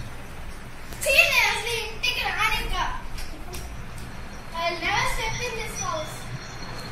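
A young girl talks and shouts playfully nearby.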